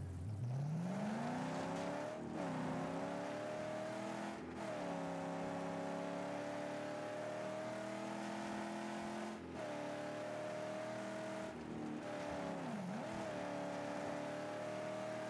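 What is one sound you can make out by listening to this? A car engine roars steadily, with brief dips at gear shifts.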